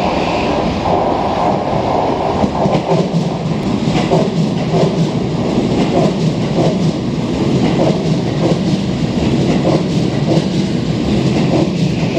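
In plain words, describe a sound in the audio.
An electric commuter train rolls into a station.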